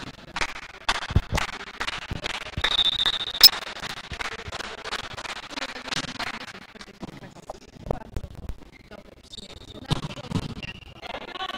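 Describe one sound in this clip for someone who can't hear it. A volleyball is struck with sharp slaps during a rally.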